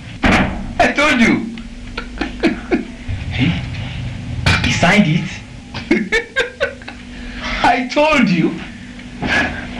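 A young man speaks excitedly and laughs.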